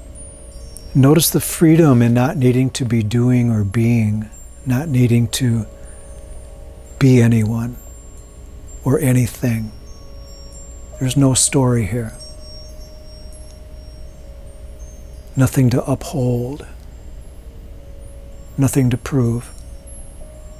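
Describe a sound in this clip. A man speaks calmly and slowly, close to a microphone, with long pauses.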